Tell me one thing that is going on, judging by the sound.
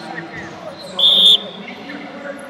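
A referee blows a sharp whistle blast.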